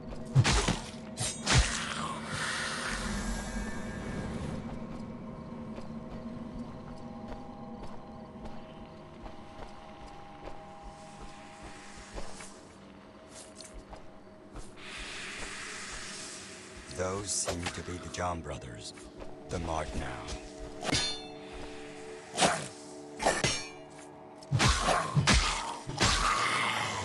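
A sword clashes and strikes in close combat.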